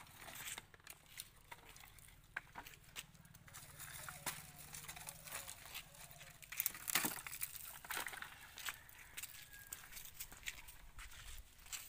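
Wooden sticks knock and clatter together.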